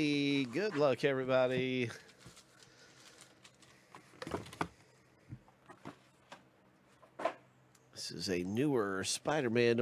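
A plastic sleeve crinkles.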